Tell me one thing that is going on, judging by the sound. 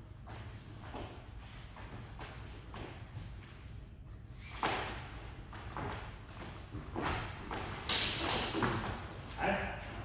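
Footsteps shuffle on a wooden floor.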